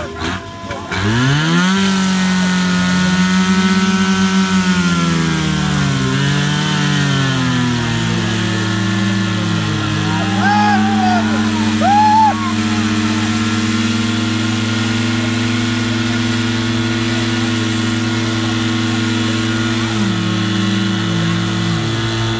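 A portable fire pump engine starts and revs under load.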